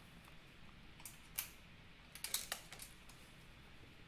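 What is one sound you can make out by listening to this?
Pastel sticks clatter in a box.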